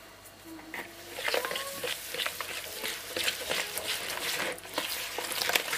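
A plastic whisk clicks and scrapes against a bowl as batter is stirred.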